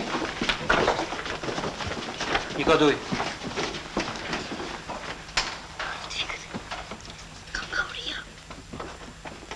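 Feet shuffle and clothes rustle as a crowd jostles.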